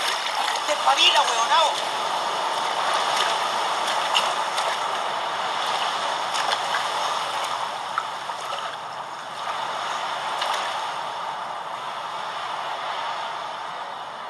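Waves crash and surge steadily against the shore.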